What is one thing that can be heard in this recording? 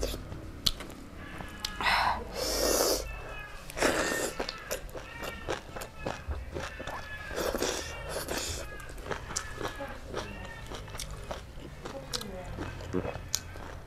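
A young woman chews and smacks her lips close to a microphone.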